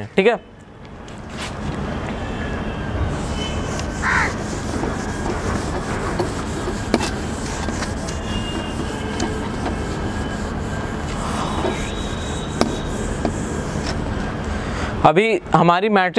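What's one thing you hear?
A cloth rubs and wipes across a board.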